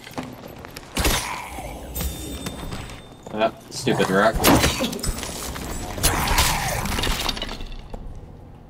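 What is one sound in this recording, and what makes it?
Metal weapons clash and strike in a fight.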